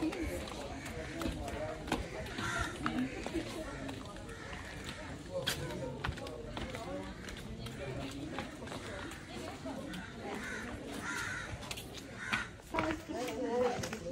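Sandals scuff and slap on stone steps.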